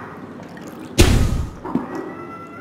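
A small chemical burst goes off with a sudden whoosh.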